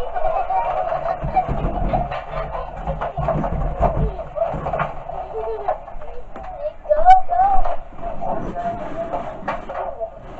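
Plastic balls clatter and rattle as a child handles them.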